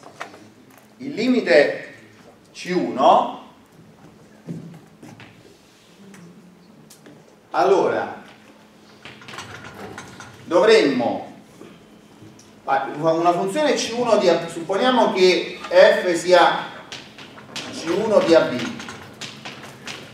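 A man lectures, speaking with pauses.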